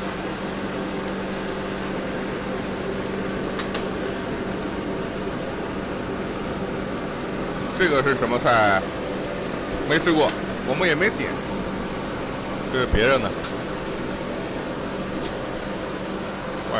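A gas burner roars steadily under a wok.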